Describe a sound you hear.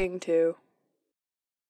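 A man asks a short question in a clear, close voice.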